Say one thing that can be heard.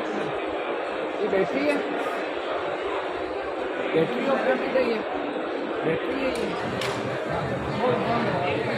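Many men chatter nearby in a busy crowd.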